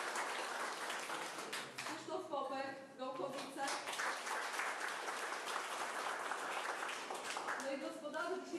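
People clap and applaud in a room.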